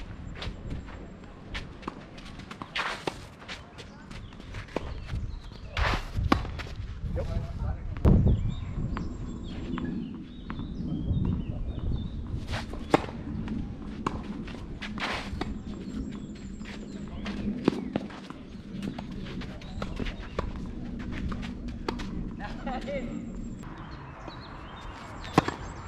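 Shoes scuff and slide on a clay court.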